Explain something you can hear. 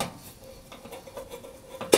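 A screwdriver scrapes and taps against metal.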